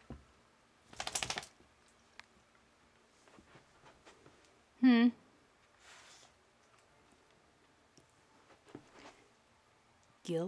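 A wire fox terrier sniffs at a carpeted floor.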